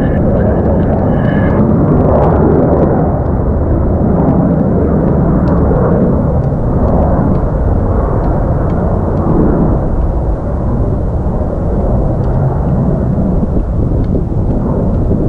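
A jet engine roars loudly and steadily overhead.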